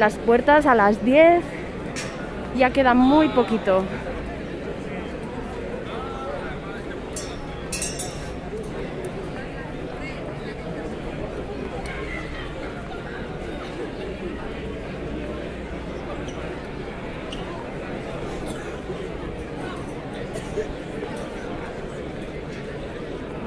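A crowd murmurs and chatters steadily outdoors.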